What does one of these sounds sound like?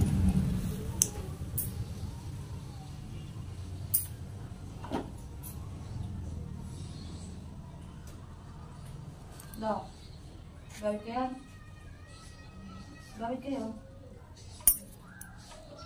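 Nail clippers snip with sharp clicks, close by.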